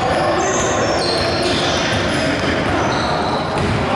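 A basketball bounces on a wooden floor as a player dribbles.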